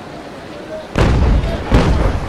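Water bursts up in a heavy splash.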